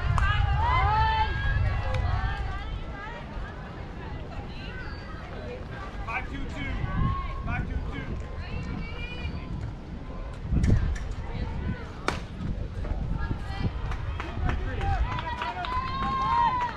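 Young girls shout and cheer outdoors across an open field.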